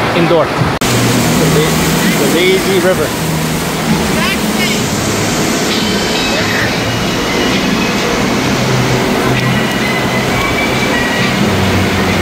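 Water splashes and rushes in a pool.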